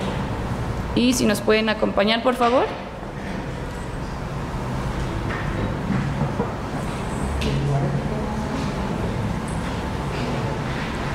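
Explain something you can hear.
A woman speaks clearly through a microphone in an echoing room.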